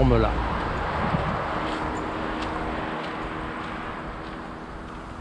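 Wind rustles through the leaves and reeds outdoors.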